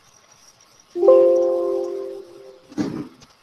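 A computer alert chime rings out briefly.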